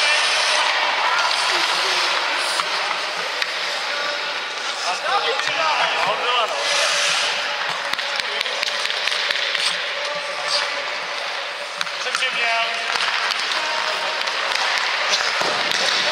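Ice skates scrape and hiss across the ice in an echoing rink.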